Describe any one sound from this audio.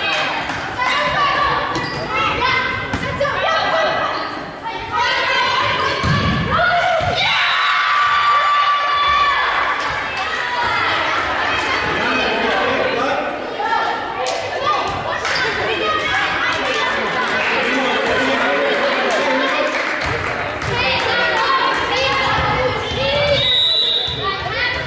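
Young women call out to each other in a large echoing gym.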